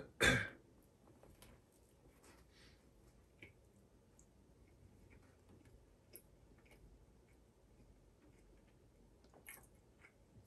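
A man bites into a burger and chews quietly.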